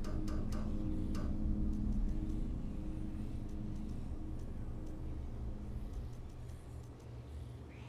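Short electronic clicks tick as a menu selection moves.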